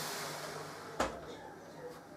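An oven door swings shut with a thud.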